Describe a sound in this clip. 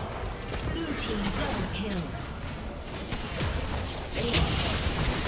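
Video game spell effects burst and clash in a fight.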